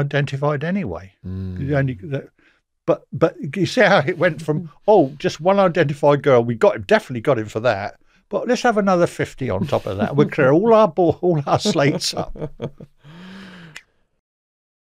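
An older man speaks calmly and steadily into a close microphone.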